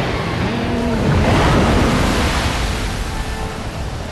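Waves crash and surge heavily.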